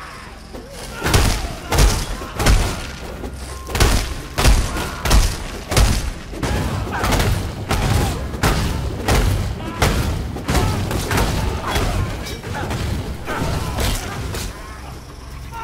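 Heavy blows land again and again with crunching impacts.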